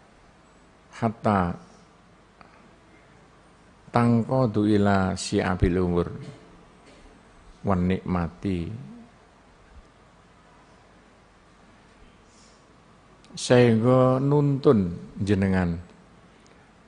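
An elderly man speaks slowly into a microphone, in short phrases with pauses.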